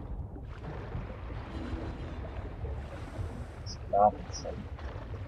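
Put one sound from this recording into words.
Wind rushes and rumbles steadily.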